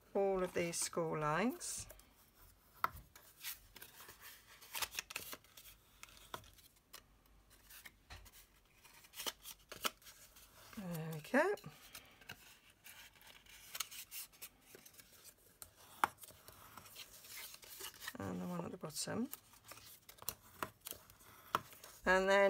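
A hard tool scrapes along a paper crease.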